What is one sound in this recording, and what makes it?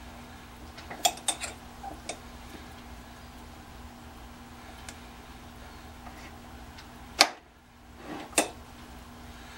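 Metal parts clink and knock sharply.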